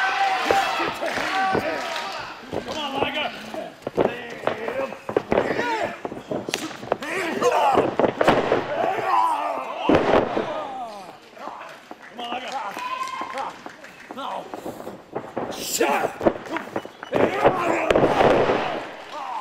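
A crowd in a large hall shouts and cheers.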